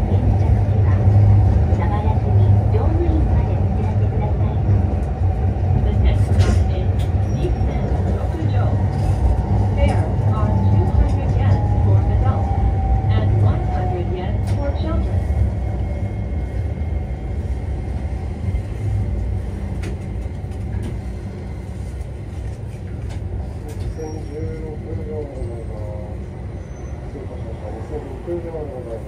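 A vehicle rumbles steadily as it rolls along a street, heard from inside.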